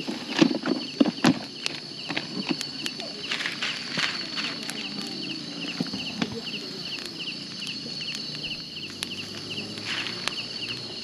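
Food sizzles and crackles on a grill over hot coals.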